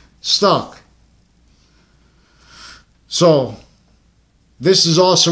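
A man speaks close up in short bursts, heard through a phone's microphone.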